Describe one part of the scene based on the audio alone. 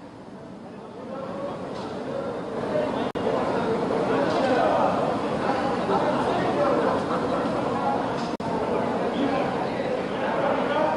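A small crowd of people chatter outdoors nearby.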